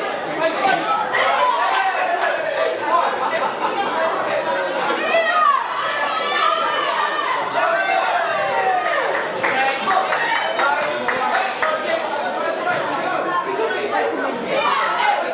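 Many voices of children and adults talk and call out at once in an echoing hall.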